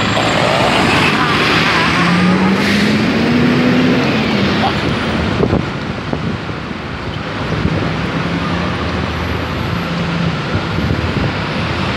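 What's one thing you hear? Engines idle and rev in slow traffic close by.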